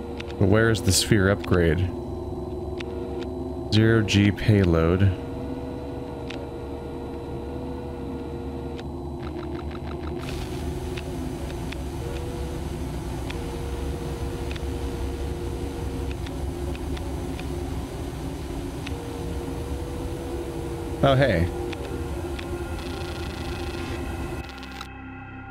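A low machine hum drones steadily.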